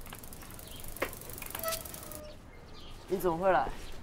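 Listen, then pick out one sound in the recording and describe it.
A bicycle rolls up and stops.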